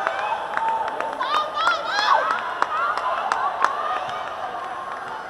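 A large crowd cheers in a big echoing hall.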